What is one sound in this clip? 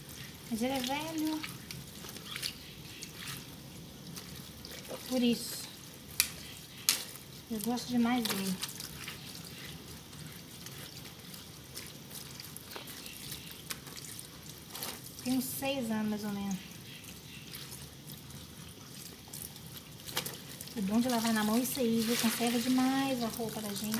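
Wet clothes slosh and squelch as they are scrubbed by hand in water.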